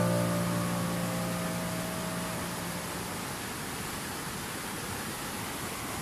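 A fast river rushes and roars over rocks.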